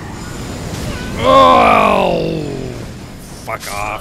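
A fiery explosion bursts with a loud roar.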